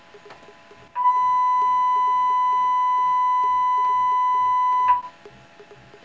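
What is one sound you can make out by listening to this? A computer plays a steady, high beeping tone.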